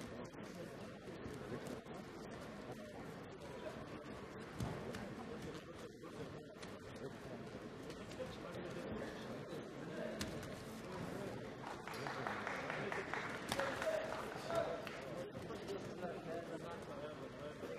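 A crowd cheers in a large indoor arena.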